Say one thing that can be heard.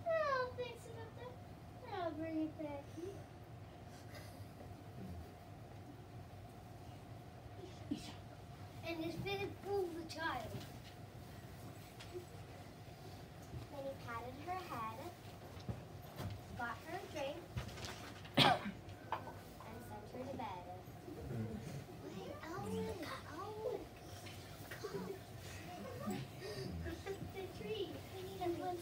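Young children speak their lines in a play, close by and lively.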